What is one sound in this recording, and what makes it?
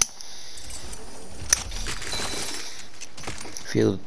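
A chest creaks open with a shimmering chime.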